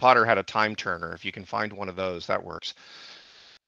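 A middle-aged man speaks with animation into a headset microphone, as if on an online call.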